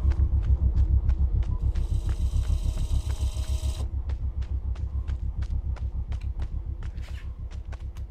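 A vehicle engine rumbles with a fast, steady, thudding beat.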